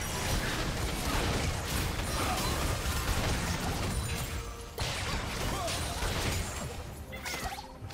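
Magic blasts crackle and boom in a busy fight.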